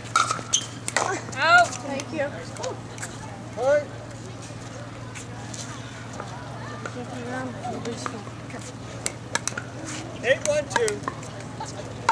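Women call out and chatter nearby outdoors.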